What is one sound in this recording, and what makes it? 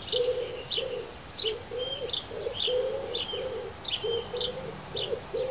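Small birds chirp repeatedly nearby.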